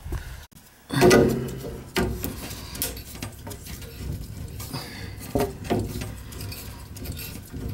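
A metal tool clicks and scrapes against a pipe fitting.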